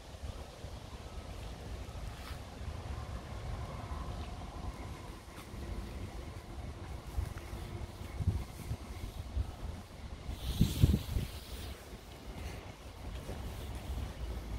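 Wind blows outdoors, rumbling across the microphone.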